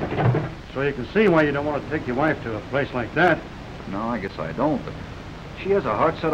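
A man speaks in a conversational tone, heard through an old, hissy film soundtrack.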